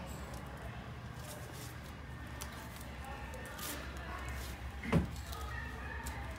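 Cardboard record sleeves knock and rustle against each other as someone flips through them.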